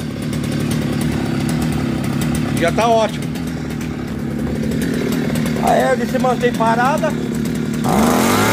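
A small two-stroke engine idles steadily, close by.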